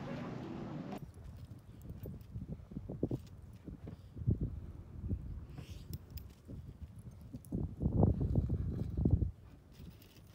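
A dog tugs and rustles at a cot's fabric.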